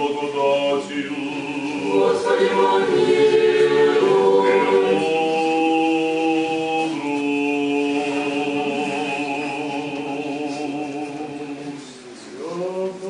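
Men chant a slow sung prayer together, echoing in a large hall.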